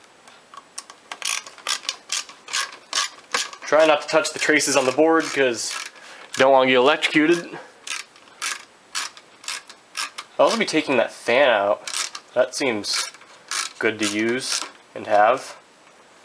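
A screwdriver clicks and scrapes on screws in a metal chassis.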